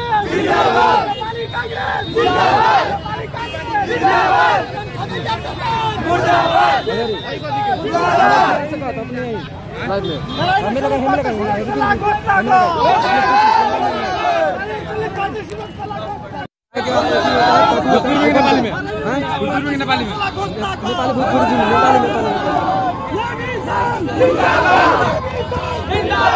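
A crowd of men chants and shouts close by.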